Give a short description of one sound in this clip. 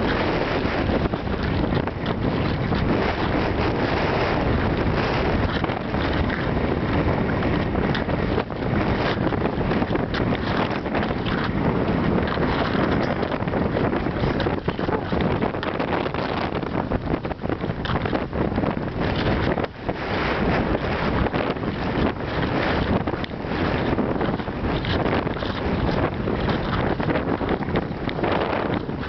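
Wind blows loudly across the microphone outdoors.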